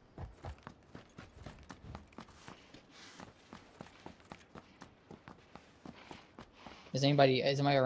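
Quick footsteps run across a hard floor.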